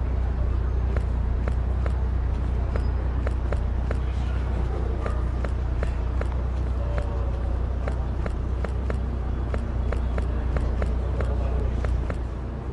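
Footsteps tap on hard pavement at a steady walking pace.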